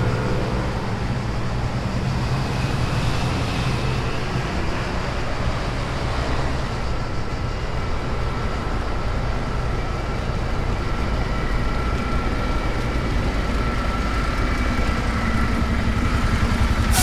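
A bus engine idles and hums close by.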